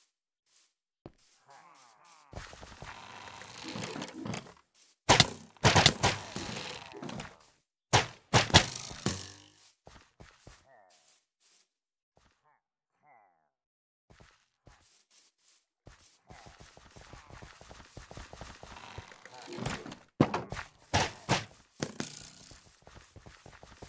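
Footsteps patter on grass and dirt.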